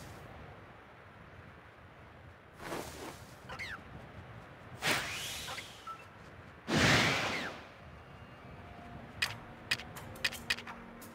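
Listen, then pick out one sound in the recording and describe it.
Frosty grass rustles as someone moves through it.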